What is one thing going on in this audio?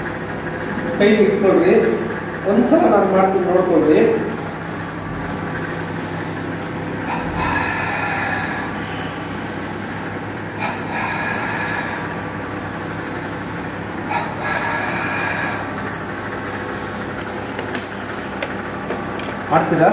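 A middle-aged man gives instructions loudly in a room with some echo.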